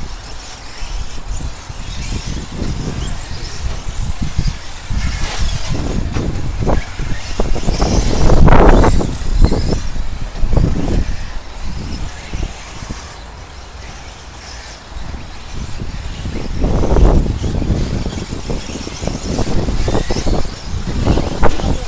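Radio-controlled short-course trucks race around a dirt track.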